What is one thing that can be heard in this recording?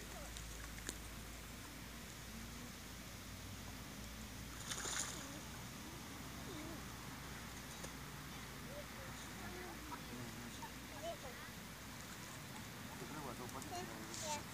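Ducks quack softly on the water.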